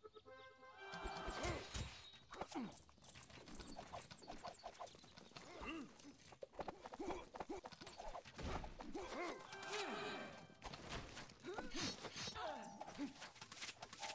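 Swords clash in a battle.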